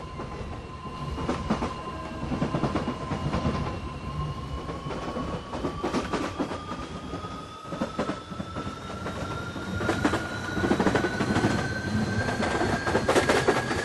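A train's electric motor whines, rising steadily in pitch as it speeds up.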